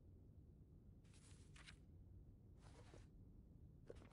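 Paper pages rustle as a notebook is handled.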